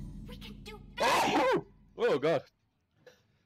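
A young man groans loudly in frustration.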